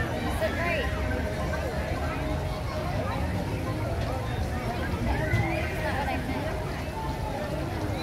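A crowd of adults and children chatters all around outdoors.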